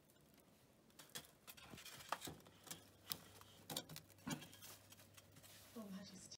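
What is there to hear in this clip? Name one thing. Chestnuts rattle and scrape in a metal pan.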